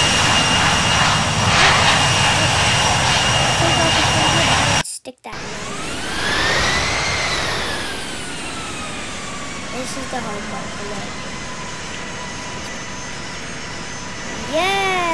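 A jet engine roars and whines, its pitch rising and then slowly falling.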